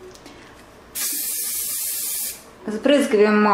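A spray can hisses in a short burst.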